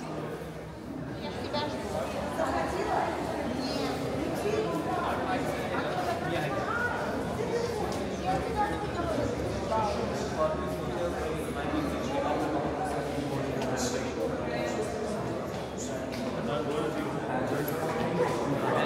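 A crowd of people murmurs and chatters in an echoing hall.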